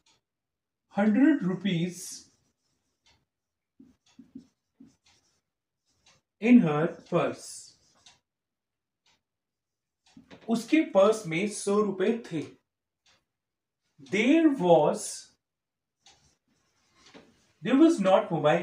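A man speaks calmly and clearly, close by, in short phrases with pauses.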